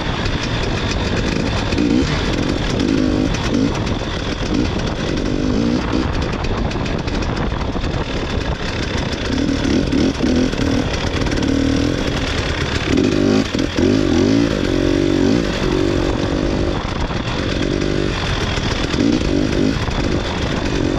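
A snowmobile engine drones and revs close by.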